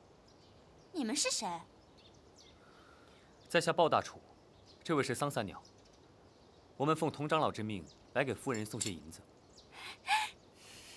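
A young woman speaks with surprise nearby.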